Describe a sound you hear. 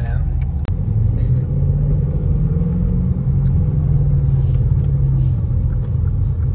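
A car engine revs up and then settles as the car speeds up.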